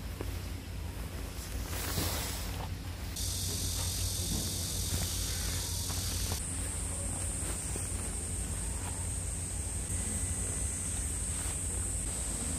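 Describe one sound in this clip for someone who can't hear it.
A foam sleeping pad rustles and crinkles as it is folded and rolled up.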